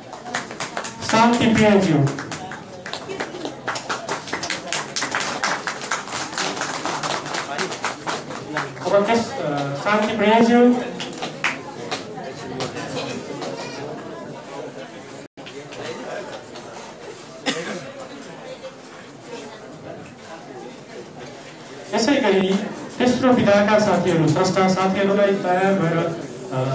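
A man speaks through a loudspeaker in an echoing hall.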